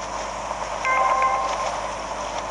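A bright chime rings once as a hang glider passes through a ring.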